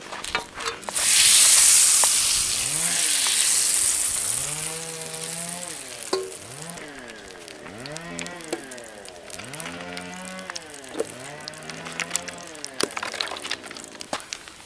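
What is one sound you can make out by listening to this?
Batter sizzles loudly in a hot pan.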